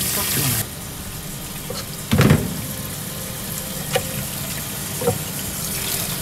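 A knife cuts through a fish with soft crunches.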